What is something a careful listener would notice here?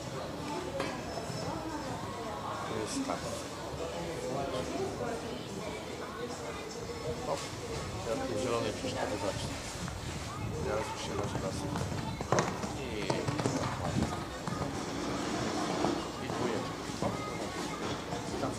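A horse's hooves thud on soft sand as it canters.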